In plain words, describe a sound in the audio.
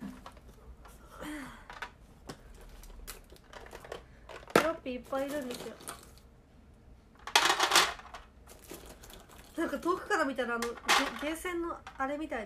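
Plastic candies rattle in a plastic box.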